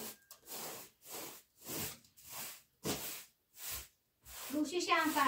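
A broom sweeps a floor in steady, even strokes.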